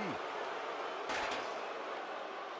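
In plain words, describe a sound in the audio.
A metal folding chair clatters onto a hard floor.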